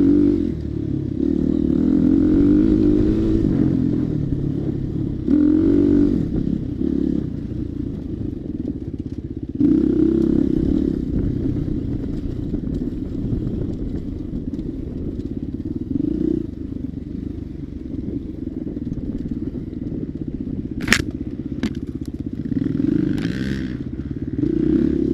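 A motorbike engine runs and revs up and down.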